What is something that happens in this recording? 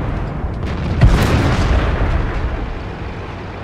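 A heavy explosion booms and debris rattles.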